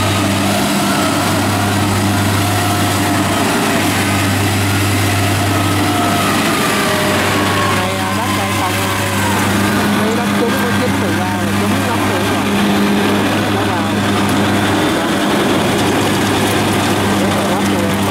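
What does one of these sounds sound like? Tracks of a combine harvester squelch and churn through deep mud.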